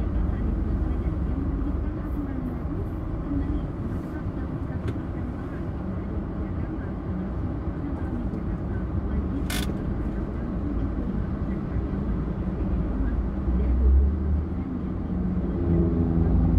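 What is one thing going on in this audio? A car engine hums low and steady inside a slow-moving car.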